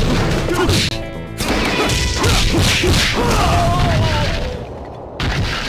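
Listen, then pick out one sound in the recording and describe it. Heavy punches and kicks land with loud thuds and smacks in a video game.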